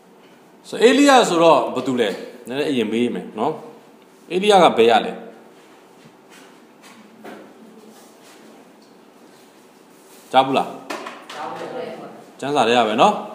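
A man speaks calmly into a microphone in an echoing room, with pauses.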